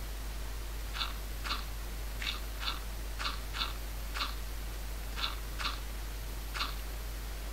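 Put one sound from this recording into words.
Short, sharp taps ring out in a quick, uneven series as blocks are set down.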